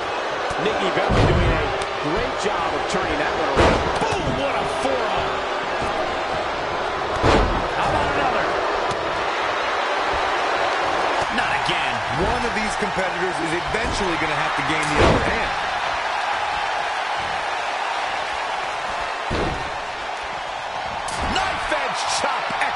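A large crowd cheers and roars steadily throughout.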